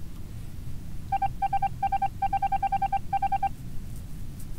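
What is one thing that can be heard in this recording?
A game blips rapidly as text types out letter by letter.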